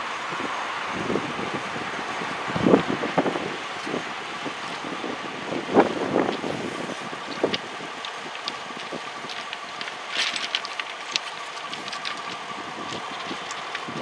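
Train wheels clatter and knock over rail joints.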